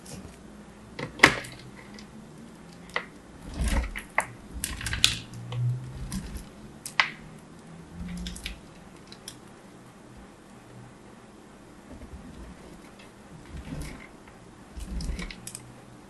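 Fingernails tap and click on a plastic grater.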